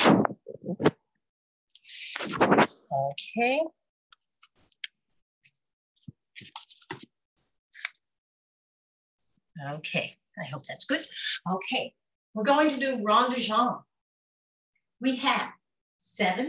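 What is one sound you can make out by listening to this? A woman talks cheerfully over an online call.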